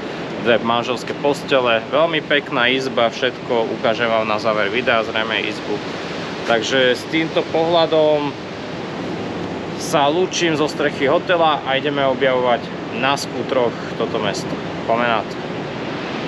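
A man talks animatedly close to the microphone.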